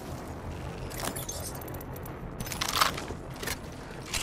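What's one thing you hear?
A weapon clicks and rattles as it is picked up and handled.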